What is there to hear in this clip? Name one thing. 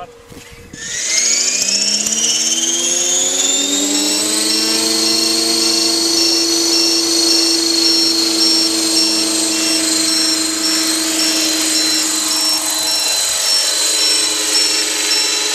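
A model helicopter's engine whines, rising in pitch as it spins up and then holding steady.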